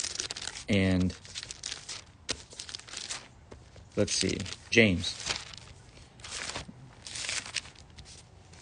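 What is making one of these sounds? A man speaks close to a phone microphone, calmly and in short bursts.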